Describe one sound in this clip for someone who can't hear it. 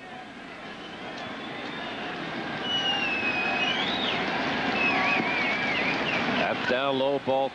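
A large crowd cheers and whistles, growing louder.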